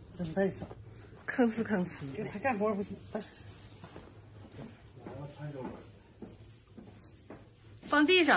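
A middle-aged woman talks nearby.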